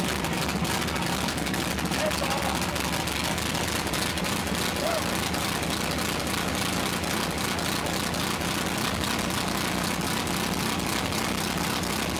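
A car engine idles loudly close by.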